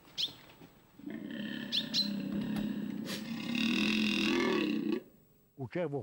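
A stag bellows with a deep, drawn-out roar nearby.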